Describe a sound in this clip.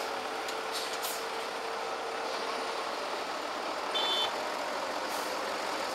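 An excavator engine drones as its arm digs into soil.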